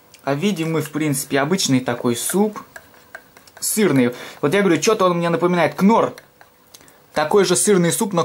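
A spoon stirs and clinks against a metal mug.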